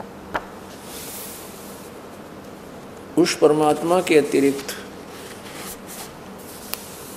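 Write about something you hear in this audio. Paper pages rustle as a book is turned.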